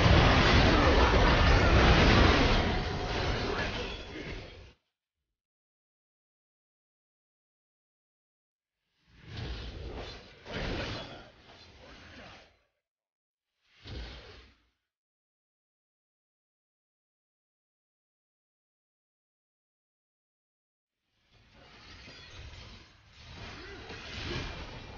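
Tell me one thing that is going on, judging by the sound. Video game spell effects burst and crackle in a fight.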